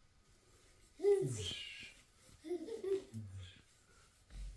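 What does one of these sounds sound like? A baby squeals and coos happily nearby.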